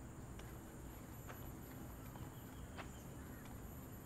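Crutches crunch on gravel with slow footsteps.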